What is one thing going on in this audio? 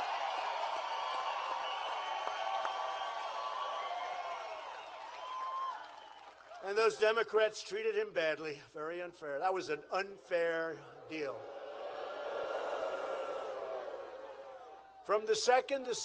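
A large crowd cheers and applauds outdoors.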